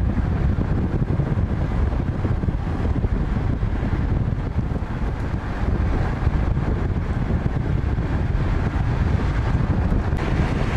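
Small car engines hum as cars drive along a road.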